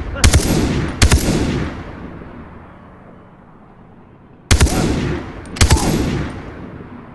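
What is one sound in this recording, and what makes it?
A rifle fires loud single shots that boom and echo away.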